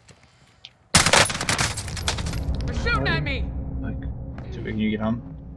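Gunshots ring out loudly.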